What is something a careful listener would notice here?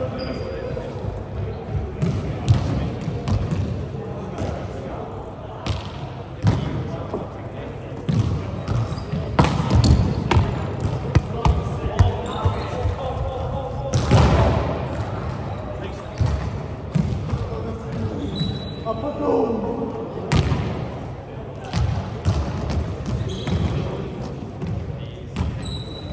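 A volleyball is struck by hand again and again in a large echoing gym.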